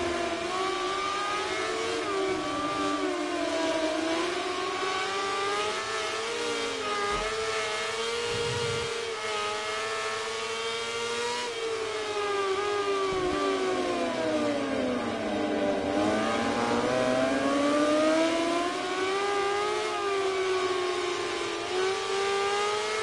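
A motorcycle engine revs high and whines, rising and falling in pitch as it speeds up and slows down.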